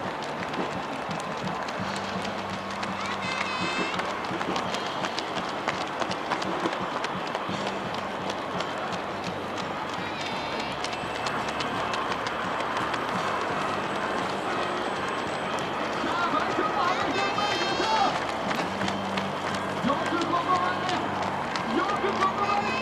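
Many running shoes patter on a paved road.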